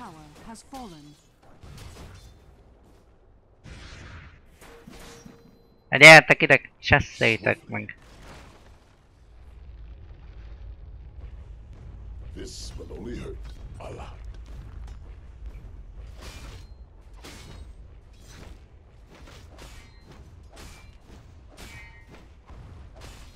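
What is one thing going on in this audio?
Video game combat sounds clash and crackle in short bursts.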